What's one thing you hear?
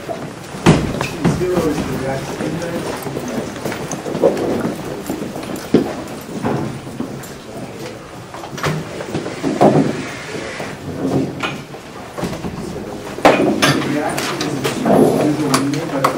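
A man lectures in a large room, heard from a distance.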